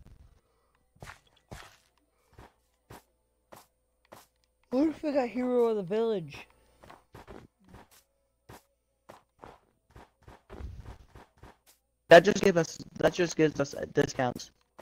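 Footsteps crunch steadily over snow.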